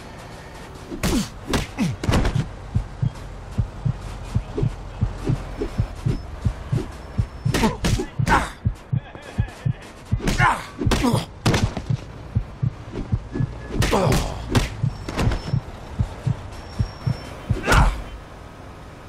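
Fists thud hard against a body in a fight.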